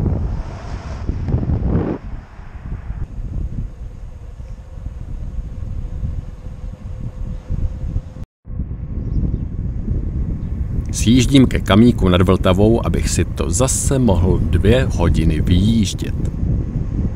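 Wind rushes and buffets loudly against a microphone outdoors.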